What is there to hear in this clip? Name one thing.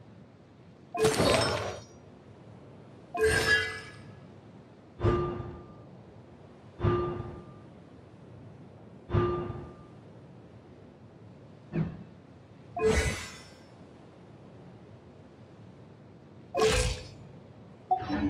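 Soft menu chimes and whooshes sound one after another.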